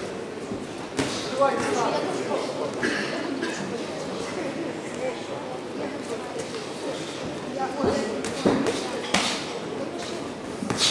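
Gloved punches land with dull thuds.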